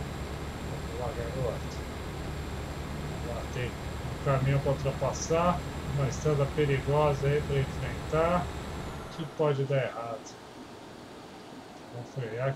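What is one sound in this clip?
A middle-aged man talks calmly through a headset microphone.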